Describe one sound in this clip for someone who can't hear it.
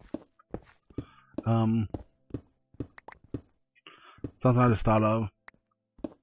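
A pickaxe knocks against stone in quick, repeated blows.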